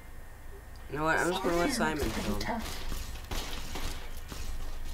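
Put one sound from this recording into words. A rotary machine gun fires in a rapid burst.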